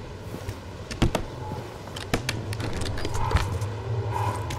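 A wooden crate lid clunks and thumps open.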